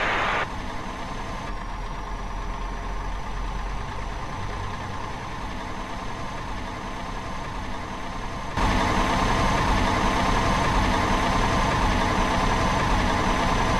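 A simulated diesel semi-truck engine drones while cruising.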